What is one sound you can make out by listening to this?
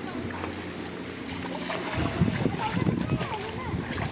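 A child wades and splashes through shallow water.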